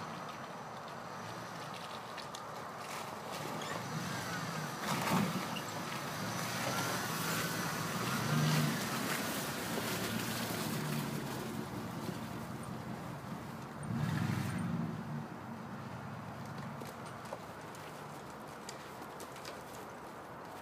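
A pickup truck's engine rumbles and revs in bursts as it drives off-road.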